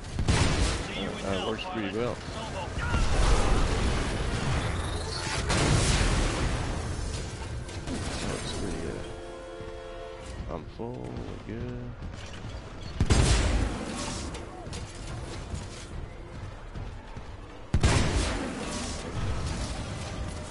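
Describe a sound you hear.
Heavy gunfire and explosions boom loudly.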